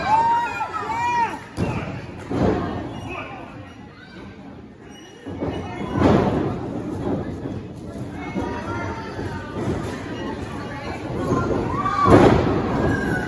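Bodies slam onto a wrestling ring mat with loud thuds.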